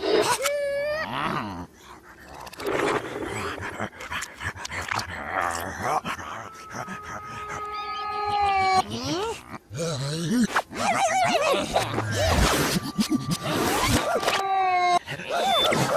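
Cartoon creatures chatter and squeal in funny, high voices.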